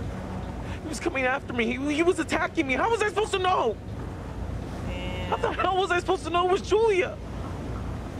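A man speaks in a strained, emotional voice.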